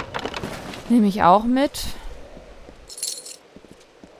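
Coins jingle as gold is picked up.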